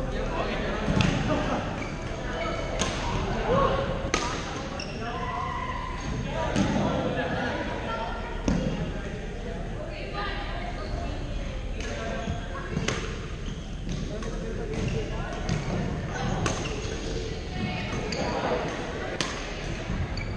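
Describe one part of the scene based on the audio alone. Badminton rackets hit a shuttlecock with sharp pops.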